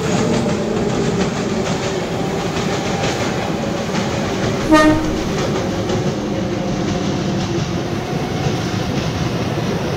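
An electric commuter train rumbles along the rails.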